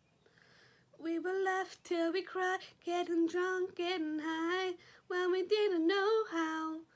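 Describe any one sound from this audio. A young girl speaks close up.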